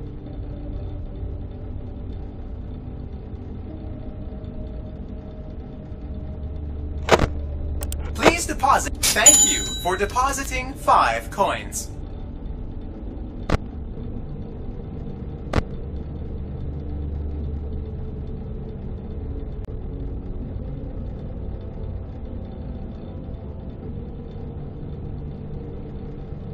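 A desk fan whirs with a low, steady hum.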